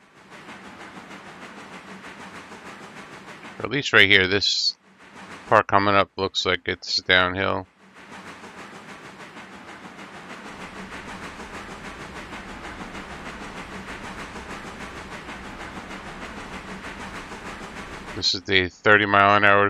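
A steam locomotive chuffs steadily.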